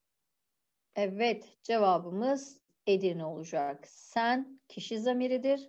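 A woman speaks calmly and clearly through a microphone.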